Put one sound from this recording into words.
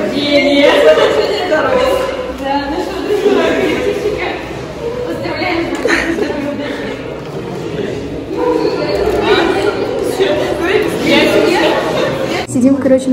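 Young women talk and exclaim excitedly close by.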